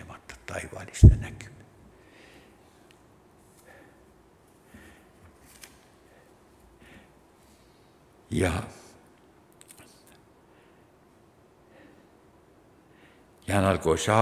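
An elderly man speaks calmly through a microphone in an echoing hall, with pauses.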